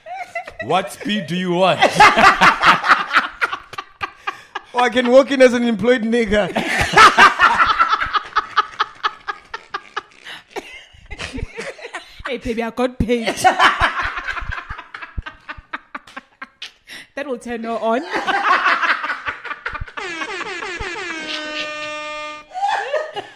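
A second young man laughs loudly and heartily close to a microphone.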